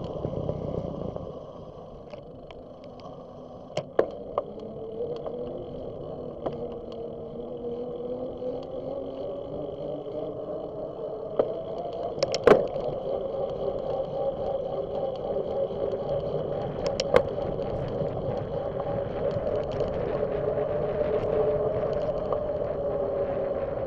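Bicycle tyres hum steadily on a paved path, rising and falling in pitch with speed.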